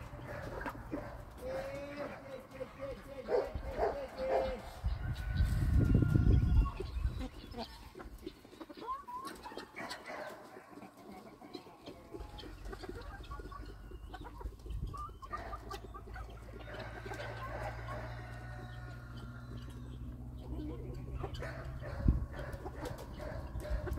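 Hens cluck and chatter nearby.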